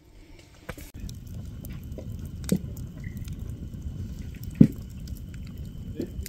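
A campfire crackles outdoors.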